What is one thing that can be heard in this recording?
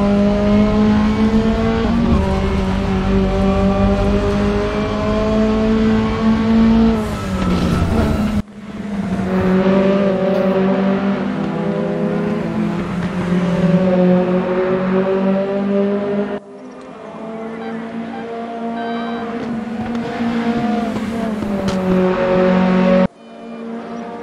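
A racing car engine drones loudly, its pitch rising and falling as it shifts gears.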